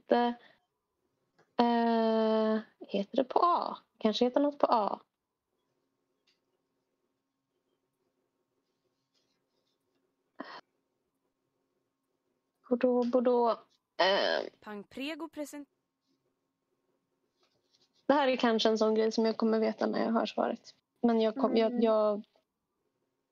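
A young woman speaks with animation over an online call, with pauses in between.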